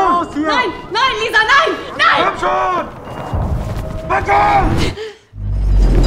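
A young woman cries out in panic.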